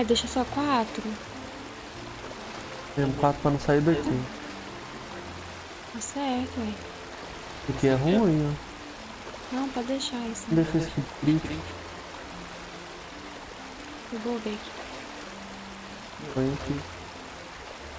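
A young woman talks casually into a microphone in short bursts.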